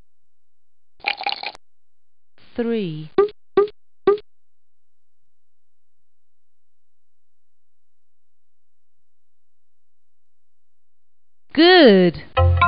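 Playful electronic sound effects chirp and bounce in short bursts.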